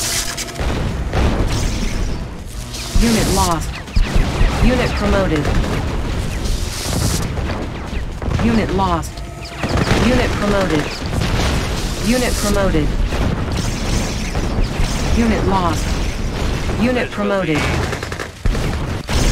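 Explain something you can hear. Explosions and gunfire from battling units boom and crackle throughout.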